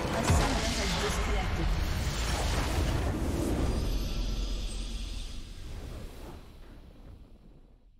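A triumphant fanfare swells.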